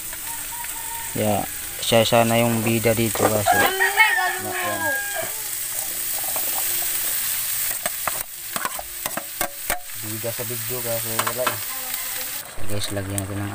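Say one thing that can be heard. Food sizzles in a pan.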